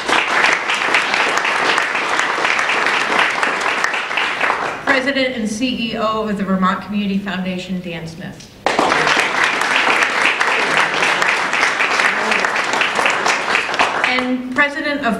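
A small group applauds.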